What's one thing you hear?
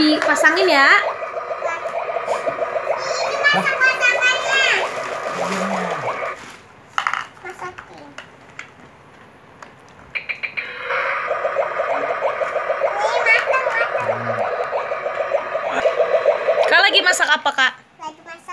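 A toy plays a beeping electronic tune.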